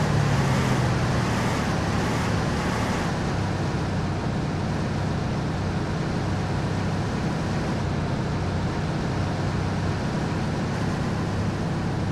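Tyres roll with a constant rush on a highway.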